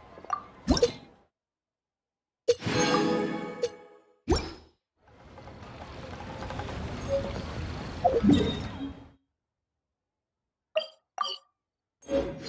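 Menu chimes and clicks sound in short bursts.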